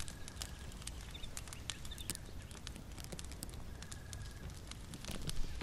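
A fire crackles and pops softly.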